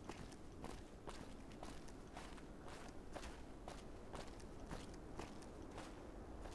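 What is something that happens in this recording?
Footsteps crunch steadily over rubble and gravel.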